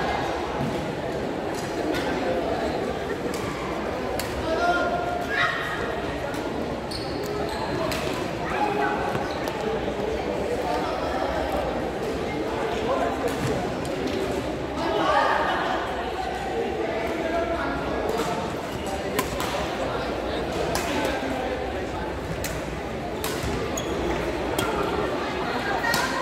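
Shuttlecocks are struck sharply with rackets, again and again.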